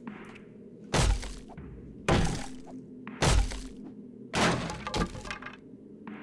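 A pickaxe strikes a wooden crate with dull thuds.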